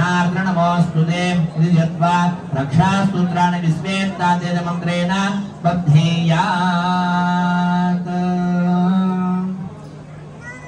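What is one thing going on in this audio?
Several men chant together in a steady, sung rhythm.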